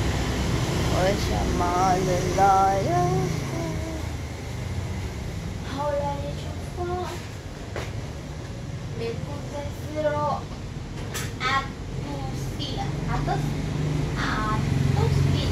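A young woman talks calmly nearby.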